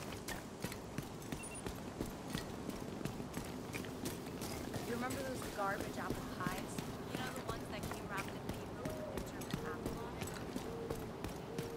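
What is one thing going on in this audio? Footsteps run quickly and evenly over hard ground.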